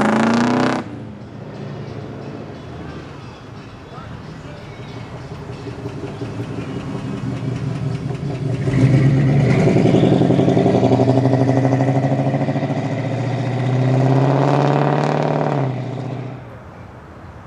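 A second car engine idles with a deep rumble, then roars as the car accelerates away.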